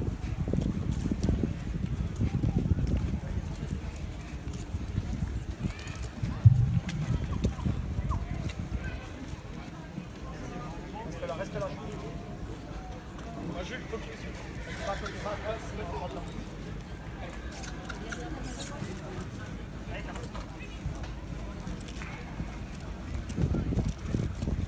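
Horses' hooves thud softly on grass.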